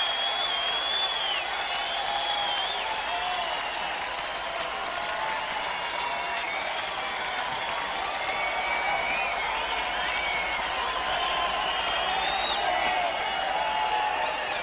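A large crowd cheers loudly in a big hall.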